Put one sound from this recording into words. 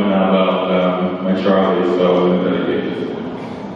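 A man sings a held note into a microphone in a large hall.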